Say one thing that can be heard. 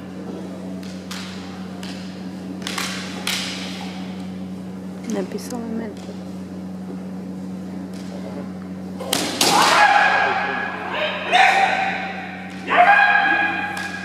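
Bamboo swords clack together in an echoing hall.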